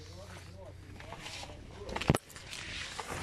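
Tent fabric rustles and flaps close by.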